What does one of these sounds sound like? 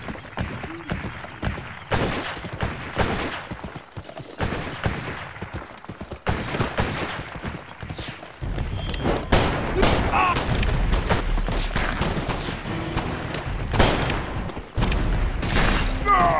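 Horse hooves gallop over hard ground.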